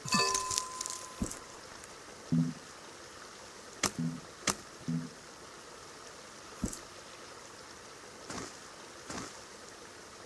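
Short game clicks and chimes sound.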